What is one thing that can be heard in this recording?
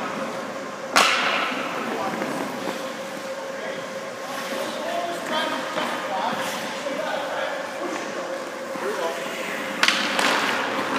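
A puck cracks sharply against a stick with a ringing echo.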